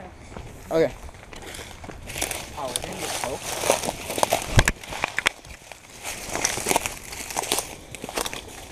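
Footsteps crunch through dry leaves and twigs.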